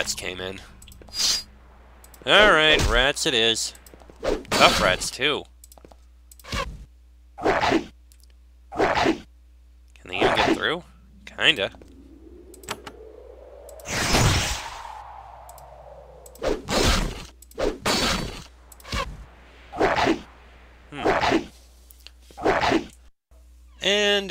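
Short bursts of fighting sounds, blows and spells, come one after another.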